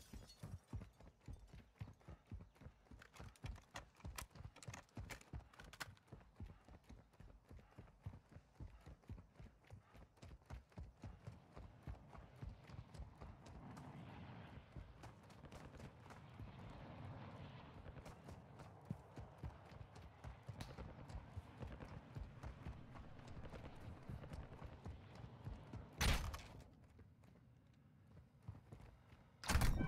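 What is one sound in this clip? Footsteps crunch quickly on gravel and dirt.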